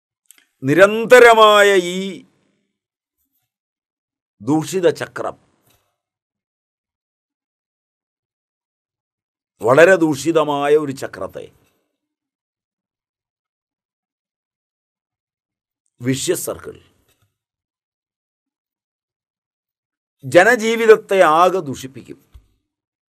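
An elderly man speaks calmly and expressively into a close microphone, in short phrases with long pauses.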